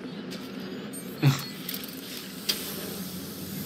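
A small drone whirs as it flies.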